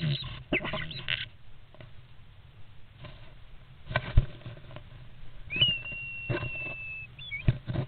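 A starling chirps and whistles.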